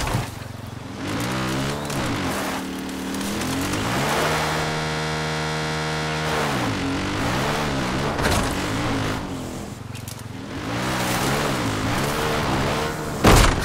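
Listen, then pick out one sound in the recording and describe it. A quad bike engine revs up and down as it climbs over rough ground.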